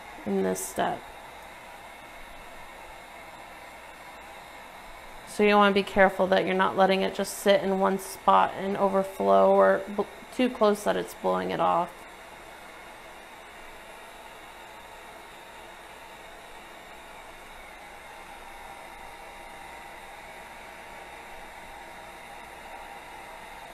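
A heat gun blows a steady stream of hot air.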